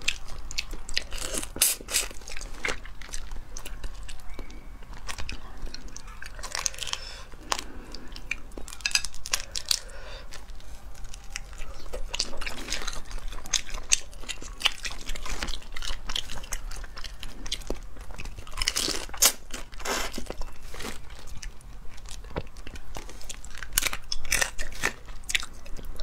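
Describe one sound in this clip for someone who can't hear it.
A young woman chews and slurps wetly close to a microphone.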